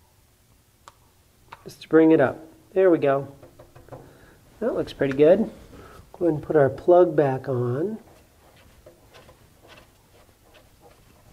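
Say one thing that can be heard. A small metal fitting clicks and scrapes as a hand turns it.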